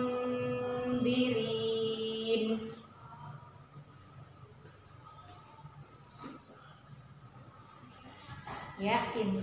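A woman chants slowly and melodiously, close to a microphone.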